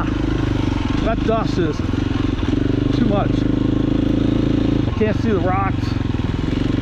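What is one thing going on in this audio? A motorcycle engine revs up sharply a few times.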